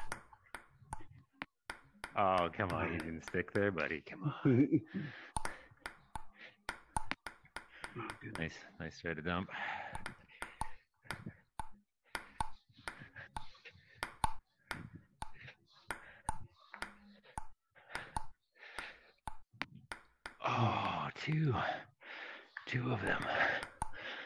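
A ping-pong ball clicks sharply against a paddle and a table in a quick rally.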